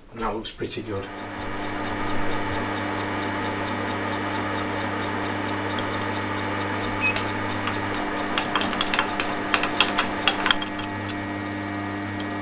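A milling machine motor hums steadily.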